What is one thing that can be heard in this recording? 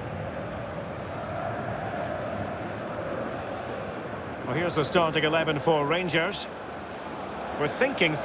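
A stadium crowd murmurs steadily in the distance.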